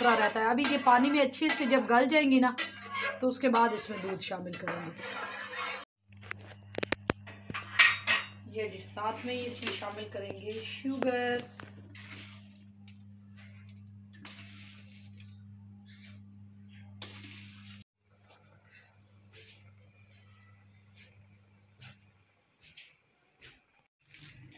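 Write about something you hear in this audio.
Liquid bubbles and simmers in a pot.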